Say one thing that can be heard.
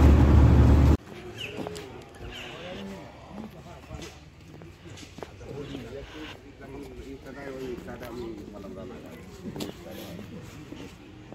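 Footsteps tap on a paved platform.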